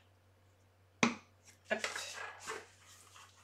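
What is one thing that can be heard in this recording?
Paper rustles and crinkles as it is folded close by.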